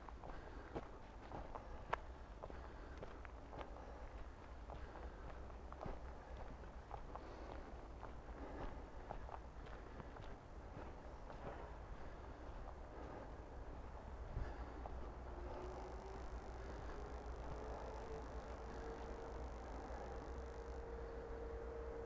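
Tyres rattle and bump over a rough dirt trail.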